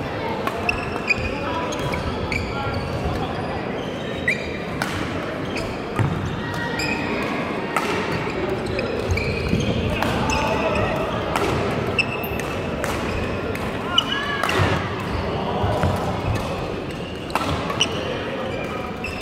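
Many voices murmur and call in a large echoing hall.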